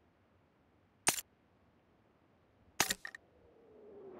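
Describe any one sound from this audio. Short clicks sound as items are picked up.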